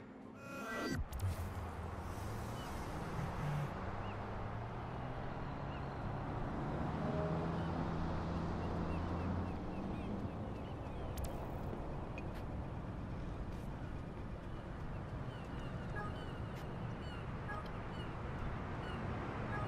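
Traffic rumbles steadily past on a bridge.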